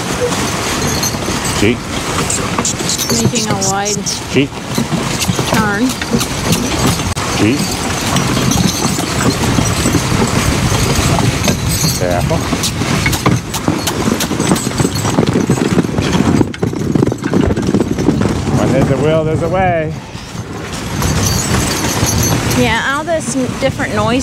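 Harness chains jingle and rattle.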